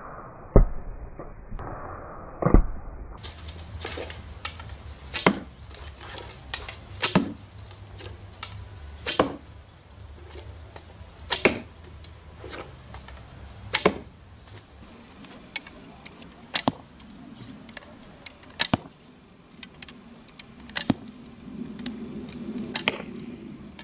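A bowstring snaps as arrows are loosed.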